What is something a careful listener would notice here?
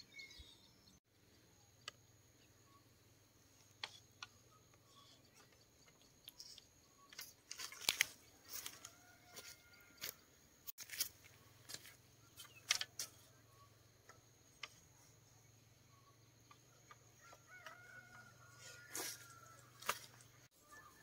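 Bamboo poles knock and clatter against each other.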